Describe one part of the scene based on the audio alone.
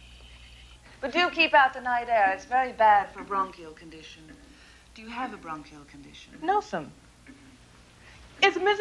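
A woman talks with animation in an echoing hall.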